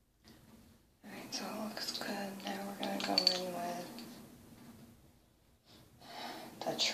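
A young woman speaks calmly, close to a microphone.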